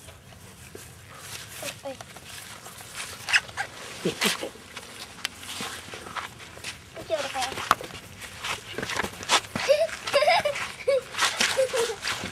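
A dog's paws rustle through grass.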